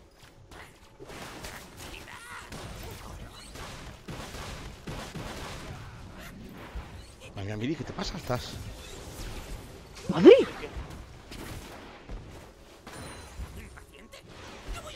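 Magical spell effects whoosh and crackle in a game battle.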